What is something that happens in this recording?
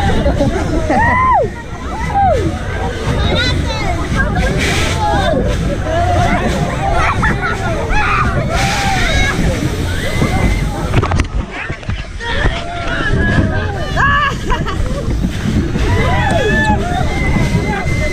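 Young men and women scream and shout excitedly close by.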